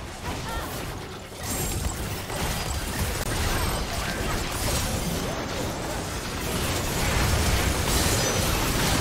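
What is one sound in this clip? Magic blasts crackle and boom in a busy fantasy battle.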